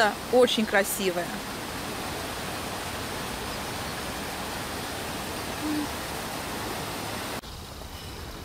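A shallow stream burbles and rushes steadily over stones.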